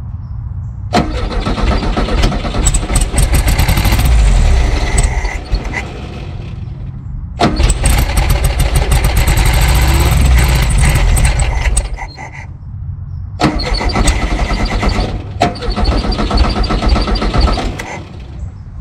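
A car engine cranks and sputters loudly in repeated bursts.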